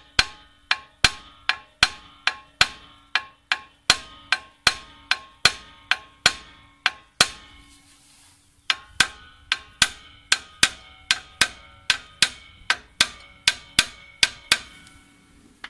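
A hammer strikes a metal brake drum in quick, ringing blows.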